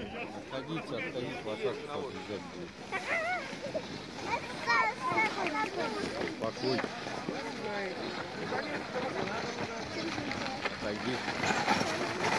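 A horse's hooves crunch through snow.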